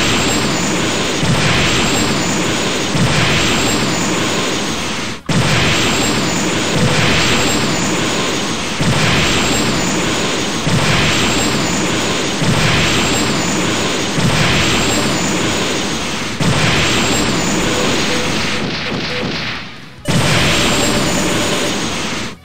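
Jet engines roar loudly and steadily.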